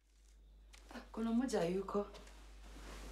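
A woman speaks quietly.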